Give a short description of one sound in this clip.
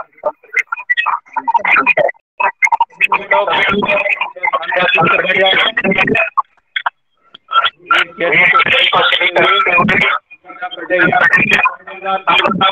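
A man speaks over an online call, talking steadily in short bursts.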